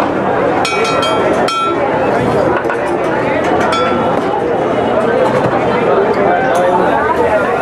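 A metal spatula scrapes across a hot griddle.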